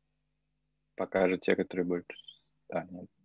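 A man speaks calmly and close to a microphone, as in an online call.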